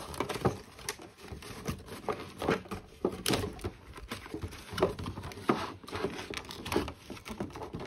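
Cardboard tears and rips as a box is opened.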